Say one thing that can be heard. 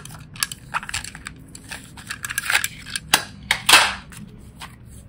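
Plastic clicks and rattles as a small lid is opened.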